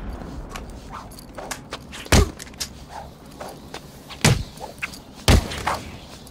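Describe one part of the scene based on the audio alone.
Heavy punches and kicks thud in a brawl.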